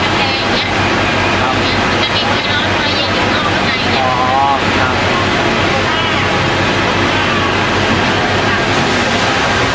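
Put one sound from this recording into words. A middle-aged woman speaks close by in an upset, shaky voice.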